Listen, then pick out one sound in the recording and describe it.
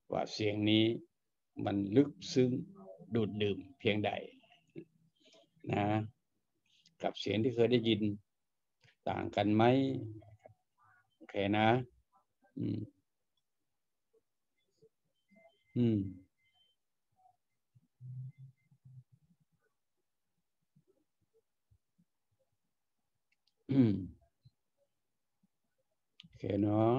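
An elderly man speaks calmly and close to a microphone, with long pauses.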